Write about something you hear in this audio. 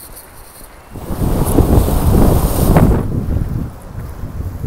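Waves crash and wash over rocks close by.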